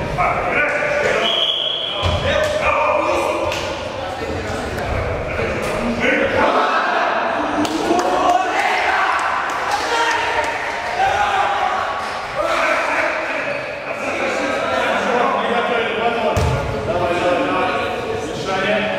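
Several males talk and shout in a large, echoing hall.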